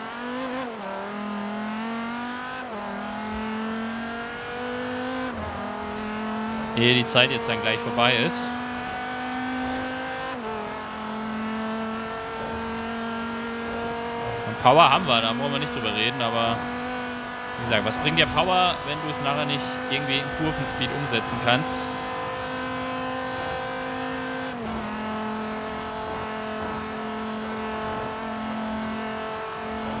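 A car engine roars at high speed, its pitch climbing and dropping with each gear change.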